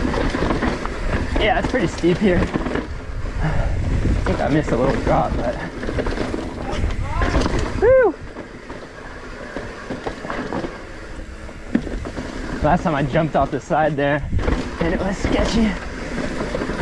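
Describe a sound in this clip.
Bicycle tyres crunch and roll over a dry dirt trail.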